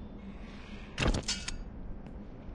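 A sword is picked up with a sharp metallic clang.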